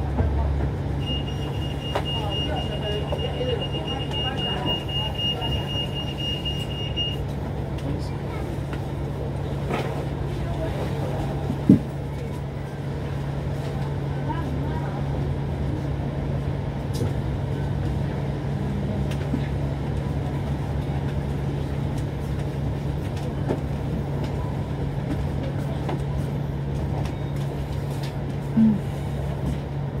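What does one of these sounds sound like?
A bus engine hums steadily as the bus drives along a city street.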